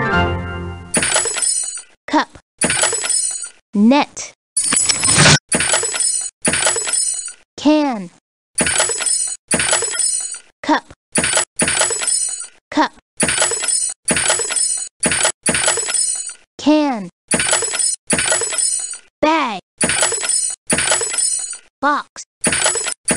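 Short bright game chimes ring out again and again, in quick succession.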